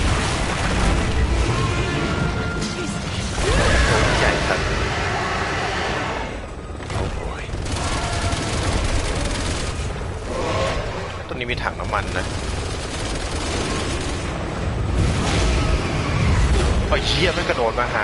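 A monster roars and growls loudly.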